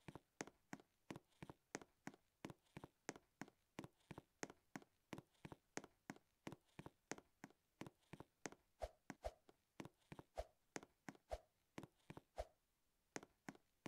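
Quick footsteps patter steadily as a game character runs.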